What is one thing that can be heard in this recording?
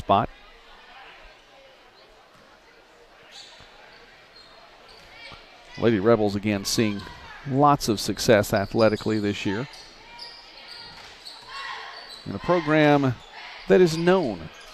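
A crowd murmurs in an echoing gym.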